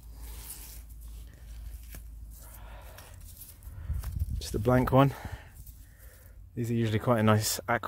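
A gloved hand scrapes and digs through loose, gritty soil.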